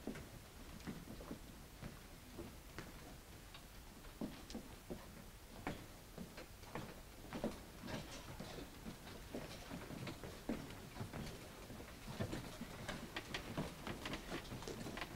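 Footsteps and shuffling echo in a large hall as many people move about.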